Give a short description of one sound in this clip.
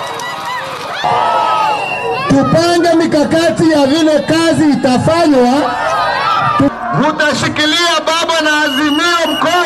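A large crowd chants and sings together.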